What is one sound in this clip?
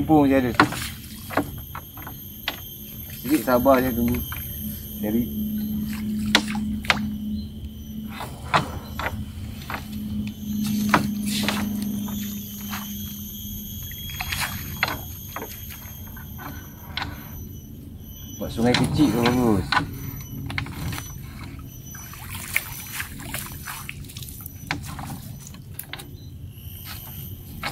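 A fishing net's weights clink and rattle against a boat.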